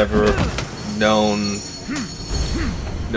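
Coins and sparkles chime in a burst of magical jingling.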